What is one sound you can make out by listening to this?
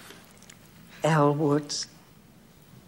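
An older woman speaks calmly.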